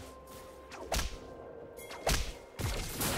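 Short magical whooshes and zaps of a video game's effects sound out.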